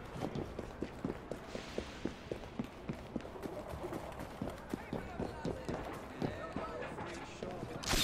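Quick footsteps run across stone.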